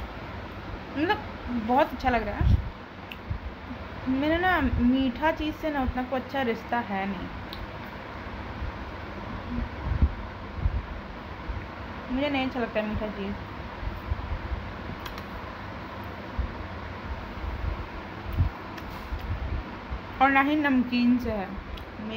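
A young woman speaks softly and playfully close by, in short phrases.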